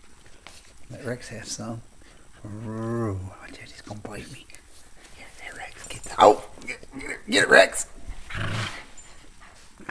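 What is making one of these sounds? Two small dogs growl and snarl at each other while playing.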